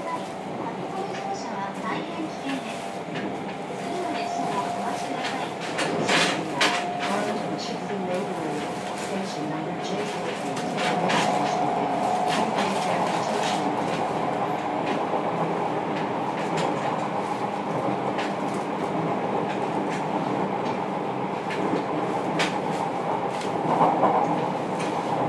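An electric train rumbles along the rails with a steady motor whine.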